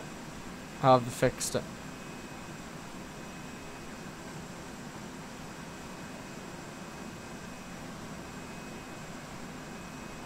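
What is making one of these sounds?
Jet engines idle with a steady low hum.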